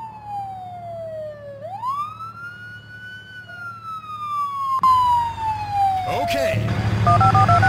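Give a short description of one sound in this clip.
A police siren wails, rising and falling in pitch.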